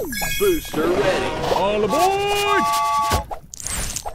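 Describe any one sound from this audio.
A cartoon train whistles and chugs.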